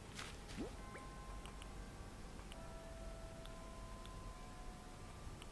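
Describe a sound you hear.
Soft electronic tones hum steadily.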